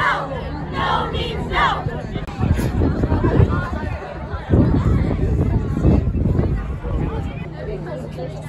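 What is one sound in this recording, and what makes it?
A crowd of teenagers chants and cheers loudly outdoors.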